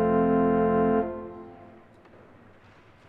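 An organ holds a loud chord that stops and rings out in an echoing hall.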